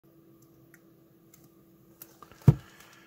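Beer pours from a can and fizzes into a glass.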